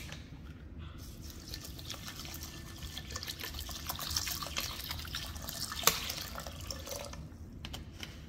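Water pours from a plastic bottle into a metal pan.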